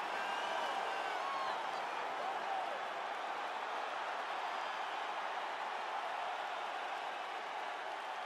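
A large crowd cheers and roars loudly, echoing through an arena.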